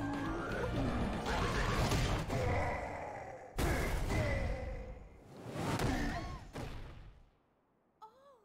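Video game effects crash and boom in a loud battle.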